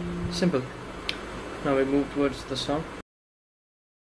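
An electric guitar plays a few notes.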